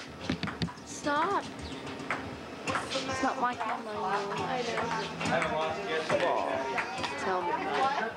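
A ping pong ball clicks back and forth on paddles and a table.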